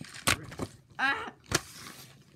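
A child squeals excitedly nearby.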